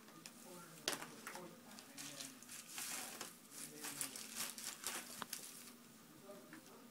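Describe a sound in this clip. A baby's hands crinkle and rustle shredded paper Easter grass.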